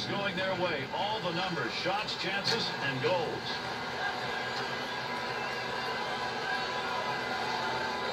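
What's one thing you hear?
Sound from an ice hockey video game plays through a television speaker.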